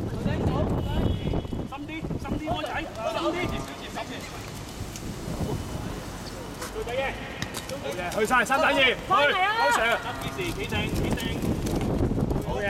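Young men shout to each other outdoors during a game.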